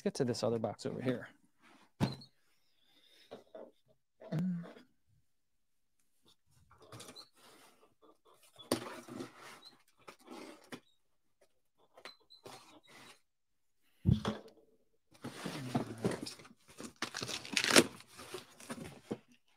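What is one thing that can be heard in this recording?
Cardboard rustles and scrapes as a box is handled and opened.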